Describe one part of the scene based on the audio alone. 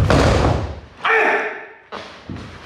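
A man shouts a sharp kiai in an echoing hall.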